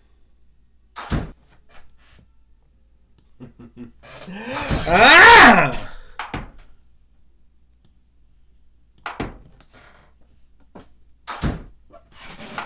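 A chess piece clicks sharply as it is placed.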